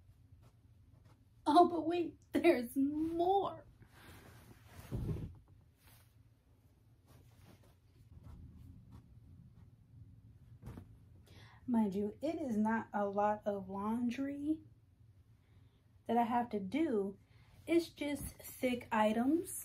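Clothes rustle as a young woman handles them.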